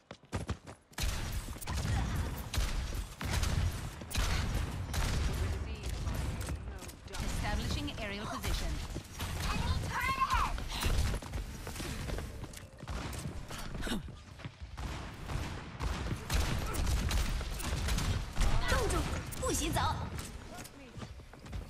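A heavy rotary gun fires in rapid bursts.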